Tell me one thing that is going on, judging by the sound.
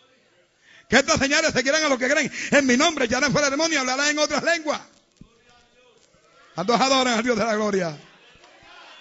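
A man preaches loudly and with animation into a microphone.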